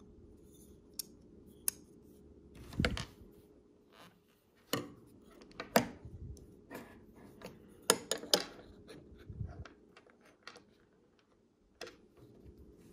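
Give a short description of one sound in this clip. Hard scale pieces click and clack against a metal knife handle.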